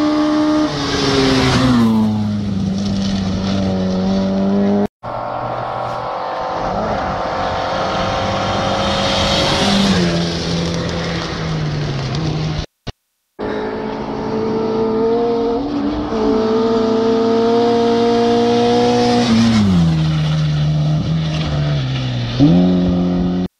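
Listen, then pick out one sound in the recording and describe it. Tyres crunch and spray gravel as a car speeds by.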